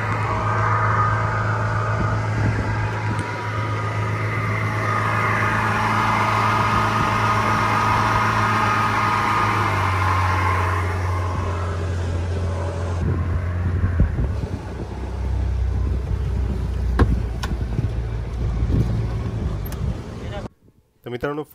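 An outboard motor drones loudly and slows down.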